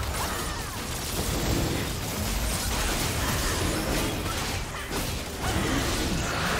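Magic spells crackle, whoosh and burst in a busy fight.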